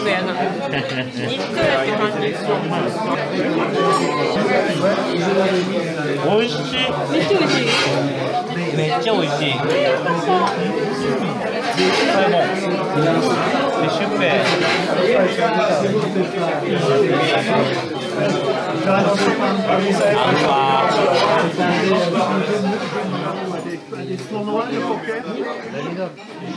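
Many people chatter in a busy, echoing room.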